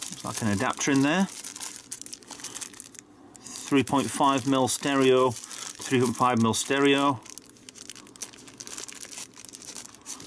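A plastic packet crinkles and crackles between fingers.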